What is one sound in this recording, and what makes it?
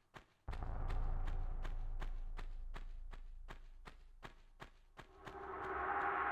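Quick footsteps patter on a stone floor.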